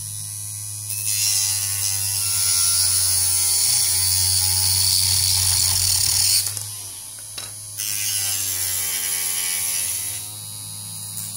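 A rotary tool grinds noisily into plastic.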